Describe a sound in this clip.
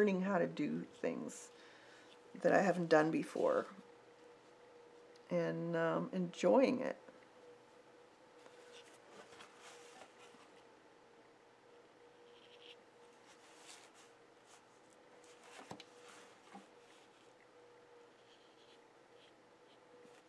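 A brush strokes softly on paper.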